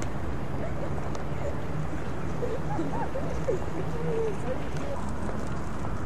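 A group of young people chat and call out outdoors.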